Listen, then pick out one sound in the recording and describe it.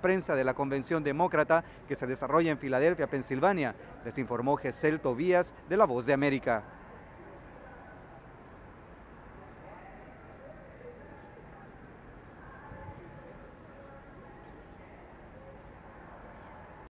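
A low murmur of distant voices fills a large room.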